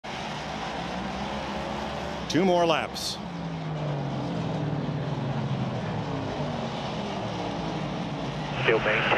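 Race car engines roar and whine steadily as cars circle a track.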